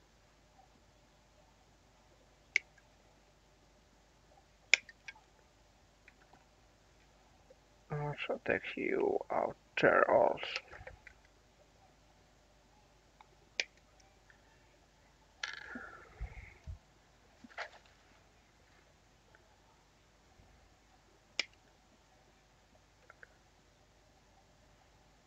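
Plastic parts rattle and click as they are handled.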